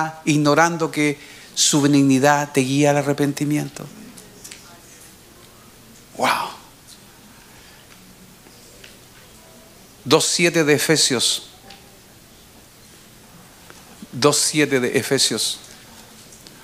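A middle-aged man speaks slowly and emphatically into a microphone, with long pauses.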